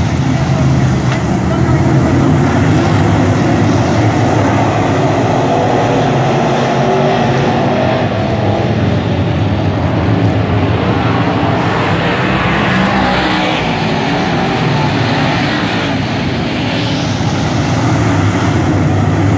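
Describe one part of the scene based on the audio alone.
Race car engines roar loudly around a dirt track outdoors, rising and falling as cars pass.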